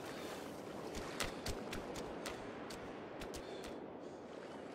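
Footsteps thud quickly on sand.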